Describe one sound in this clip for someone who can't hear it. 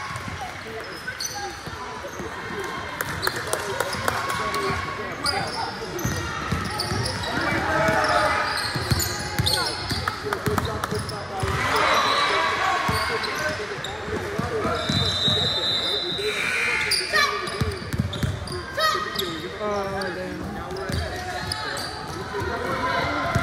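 A basketball bounces on a hard court with a hollow echo.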